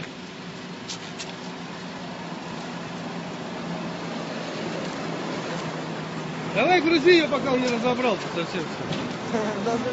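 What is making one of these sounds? A car door rattles and thuds.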